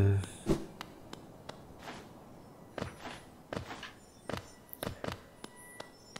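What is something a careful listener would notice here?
Light footsteps patter steadily.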